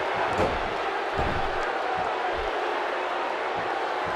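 A body slams down onto a wrestling ring mat with a heavy thud.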